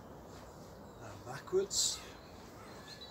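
A man speaks a few words calmly, close by.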